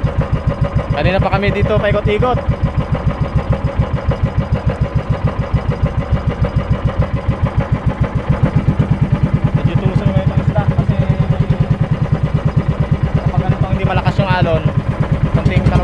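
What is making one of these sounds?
A man calls out briefly nearby over the engine.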